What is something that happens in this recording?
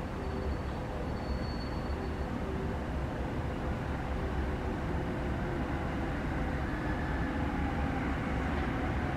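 An electric train rolls in, its wheels rumbling on the rails and slowly growing louder.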